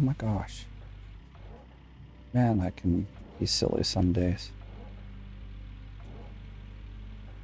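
A diesel excavator engine hums steadily at idle.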